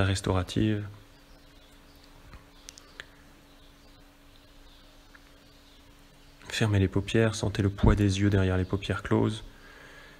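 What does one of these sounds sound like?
A man speaks calmly and slowly, close by.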